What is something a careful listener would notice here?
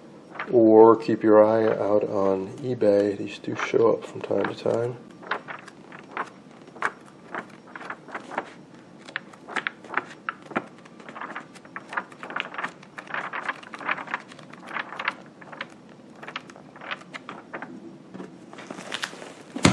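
Paper pages rustle and flip quickly.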